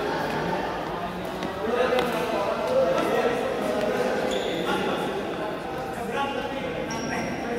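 Voices of players echo in a large hall.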